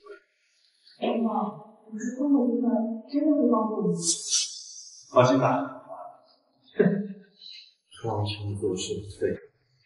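A woman speaks scornfully.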